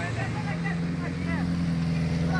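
A motorcycle engine idles close by with a steady rumble.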